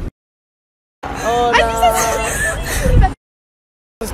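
A young woman cries out close by.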